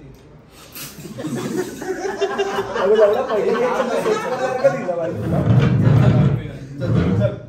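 Several young men laugh and cheer loudly together.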